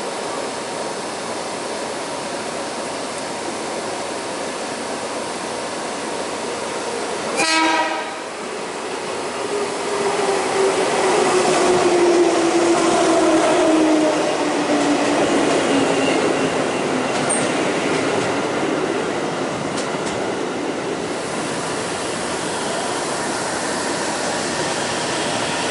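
An electric train approaches and rolls into the station.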